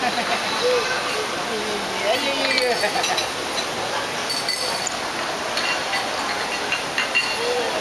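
A woman talks playfully to a baby nearby.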